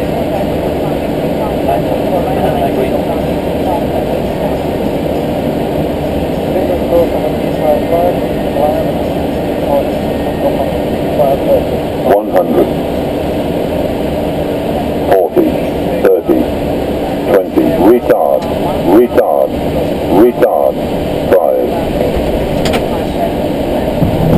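An aircraft's engines and airflow roar steadily in a cockpit.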